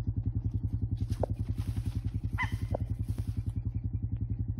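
A bird's wings flap loudly as it takes off and flies away.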